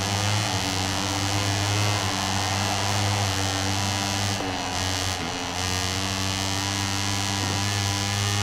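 A motorcycle engine roars loudly at high revs.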